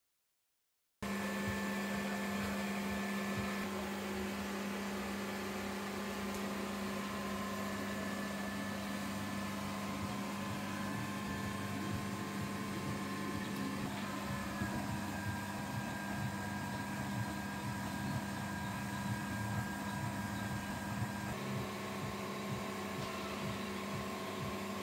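An electric sign hums steadily.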